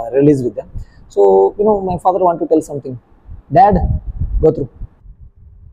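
A man speaks calmly and clearly into a microphone close by.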